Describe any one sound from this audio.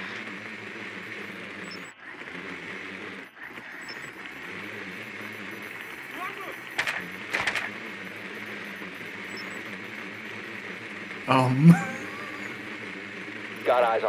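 A small motor whirs steadily as a little wheeled machine rolls across a hard floor.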